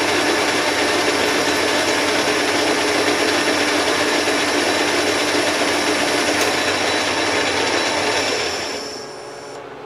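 A metal lathe cuts with a loud, steady grinding whir.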